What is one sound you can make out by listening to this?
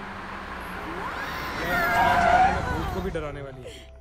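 Car tyres squeal on a smooth floor.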